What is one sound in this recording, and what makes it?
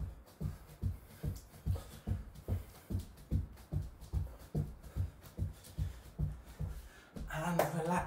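Feet thump steadily on a wooden floor in a quick rhythm.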